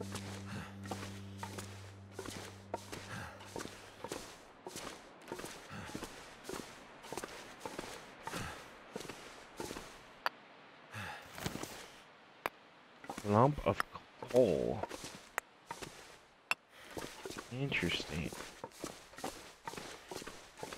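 Footsteps scuff steadily over rocky ground.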